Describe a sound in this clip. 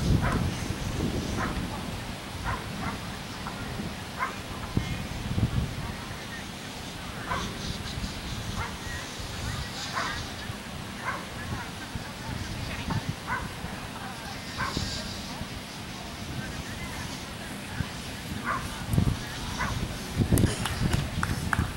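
Wind rumbles across an open field.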